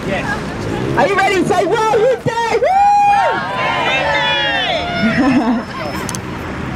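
A crowd of young women and men cheer and whoop loudly outdoors.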